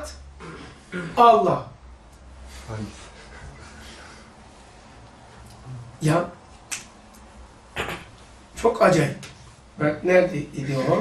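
An elderly man speaks calmly and slowly into a nearby microphone, with long pauses.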